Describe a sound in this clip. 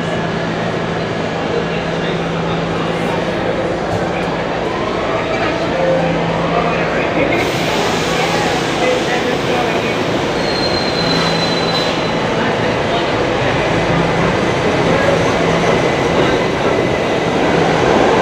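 A subway train rumbles and clatters loudly past on the tracks.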